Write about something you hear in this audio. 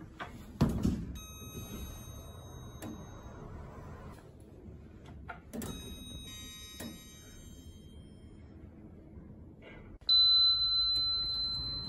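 An electronic elevator hall lantern chimes.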